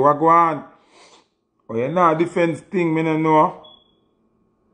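A young man speaks with animation, up close.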